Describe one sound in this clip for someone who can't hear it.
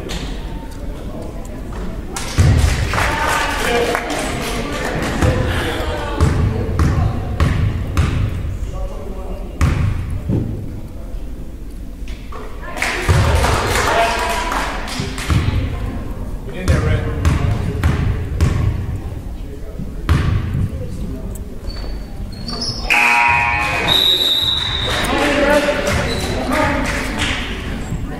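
A basketball bounces on a wooden floor with echoing thuds.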